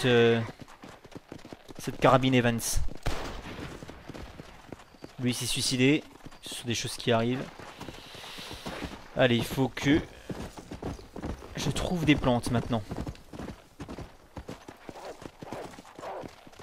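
Horse hooves gallop over dry ground.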